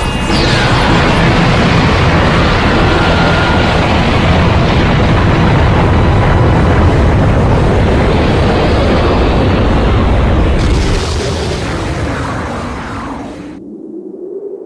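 A huge explosion roars and rumbles, then slowly fades.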